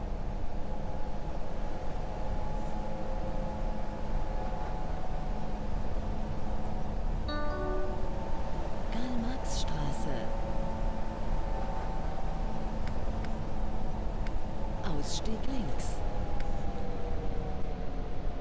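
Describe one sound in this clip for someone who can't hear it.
A train rumbles steadily along the rails in a tunnel.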